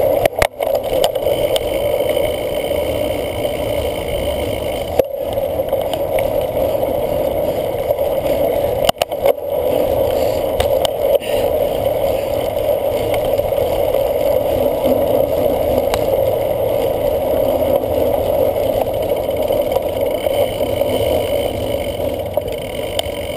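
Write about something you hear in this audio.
Cyclocross bike tyres rumble over bumpy grass, rattling the bike.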